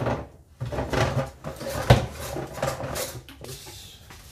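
A wooden drawer slides open and shut.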